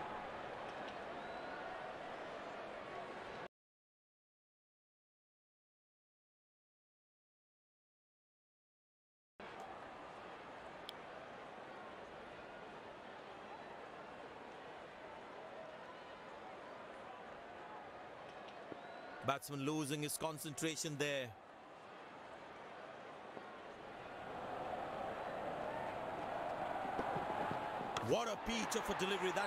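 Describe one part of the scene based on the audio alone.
A stadium crowd murmurs and cheers steadily, swelling near the end.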